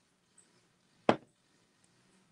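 A mug is set down on a table with a knock.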